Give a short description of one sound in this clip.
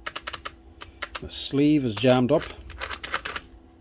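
A plastic drill chuck clicks and ratchets as it is twisted by hand.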